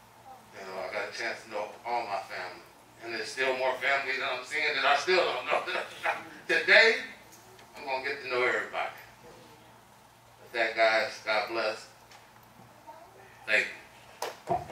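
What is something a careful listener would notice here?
A man speaks calmly into a microphone, heard through loudspeakers in an echoing hall.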